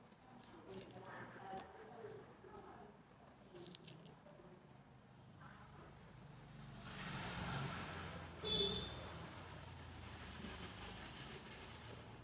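A knife scrapes and slices through a tough fruit rind.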